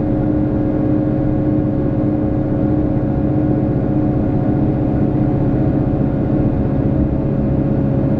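A train rumbles and hums steadily along the tracks.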